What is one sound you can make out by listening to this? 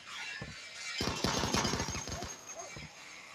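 Gunshots rattle off in a rapid burst.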